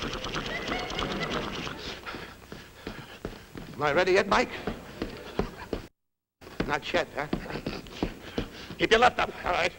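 A man sings with animation, heard through an old, thin recording.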